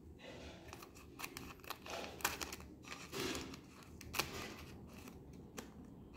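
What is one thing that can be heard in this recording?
Scissors snip through a foil wrapper.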